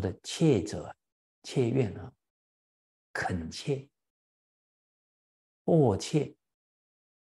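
A middle-aged man speaks calmly and slowly into a microphone, pausing between phrases.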